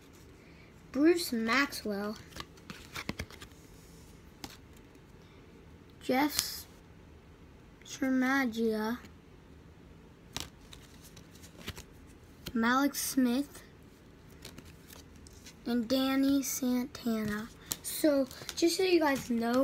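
A boy talks close by, with animation, in short bursts.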